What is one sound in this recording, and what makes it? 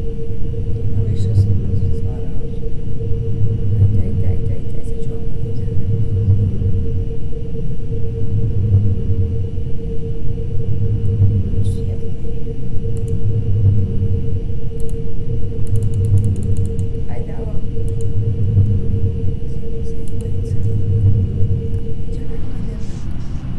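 An alarm blares in slow, steady pulses.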